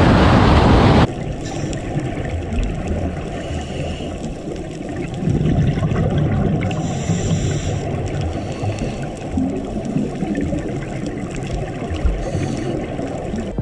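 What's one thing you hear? Water murmurs and rumbles underwater.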